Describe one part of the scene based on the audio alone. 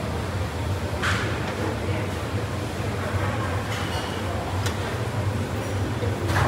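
A metal ladle scrapes and clinks against a pot.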